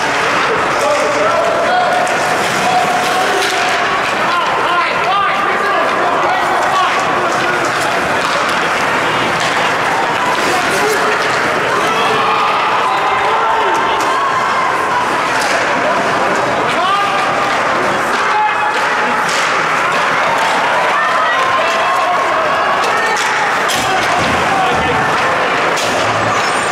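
Spectators in a large echoing rink shout and cheer throughout.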